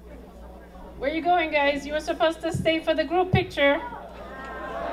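A woman speaks with animation through a microphone and loudspeakers in a large room.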